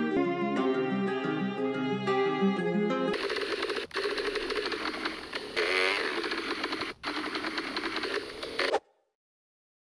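A motorbike engine revs.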